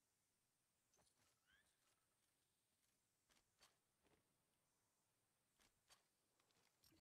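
Light footsteps patter on grass and dirt.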